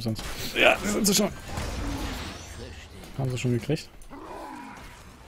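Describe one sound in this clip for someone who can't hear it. Magic spells burst and crackle in a video game battle.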